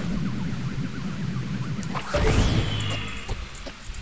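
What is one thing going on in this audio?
An arrow whooshes off a bow and bursts into flame.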